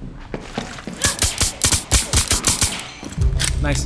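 A pistol fires a quick series of sharp shots.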